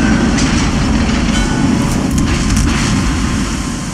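Shells splash into the sea near a ship.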